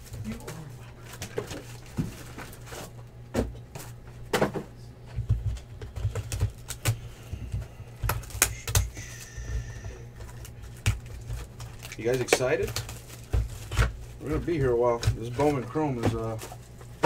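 Cardboard boxes knock and tap as hands handle them.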